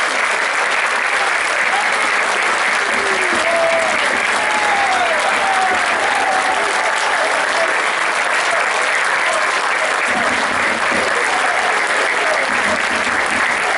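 A large crowd cheers and roars steadily in an open stadium.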